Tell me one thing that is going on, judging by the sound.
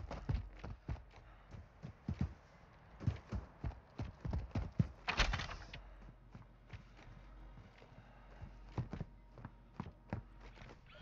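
Footsteps thud on the ground and on wooden floorboards.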